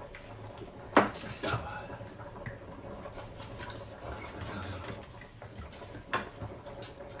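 Spoons and chopsticks clink against bowls.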